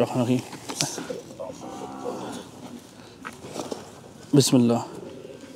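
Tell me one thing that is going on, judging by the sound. Metal hoof nippers snip and crunch through a cow's hoof.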